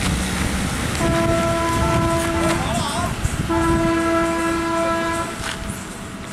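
A truck horn blares in two long blasts.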